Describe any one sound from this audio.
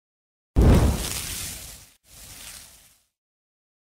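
Flames burst up with a loud whoosh and die away.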